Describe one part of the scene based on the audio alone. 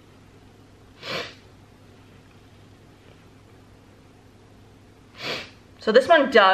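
A young woman breathes out audibly.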